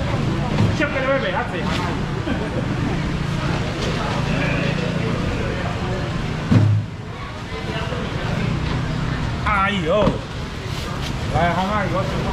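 Several people talk nearby in a busy, echoing crowd.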